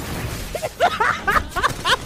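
A young person laughs into a close microphone.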